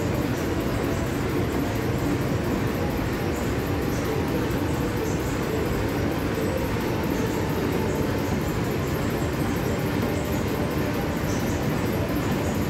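A large engine runs with a steady, heavy chugging and knocking.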